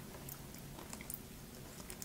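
A sauce dip squelches softly as food is dipped in it.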